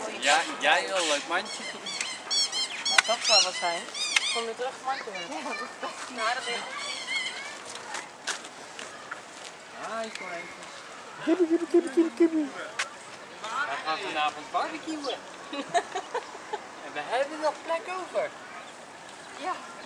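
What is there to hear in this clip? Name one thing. Young women talk and laugh nearby, outdoors.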